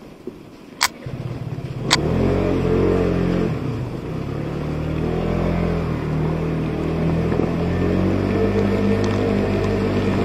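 A scooter engine starts and runs with a steady, low hum.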